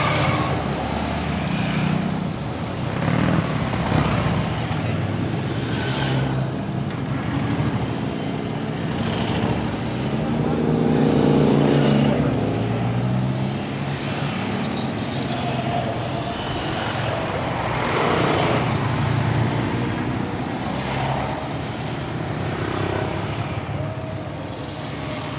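A long column of motorcycles cruises past at low speed, with engines rumbling one after another.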